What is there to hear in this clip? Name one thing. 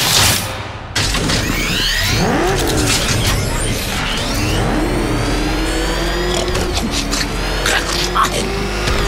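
A powerful car engine roars steadily.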